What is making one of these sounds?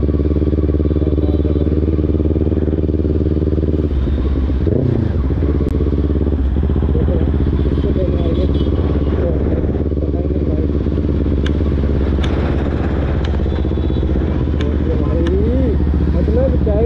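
A motorcycle engine hums steadily close by as the bike rides along.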